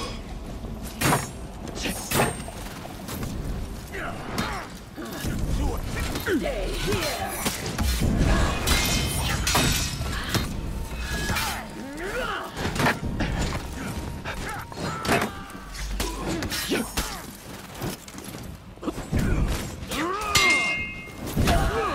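Steel blades clash and ring again and again.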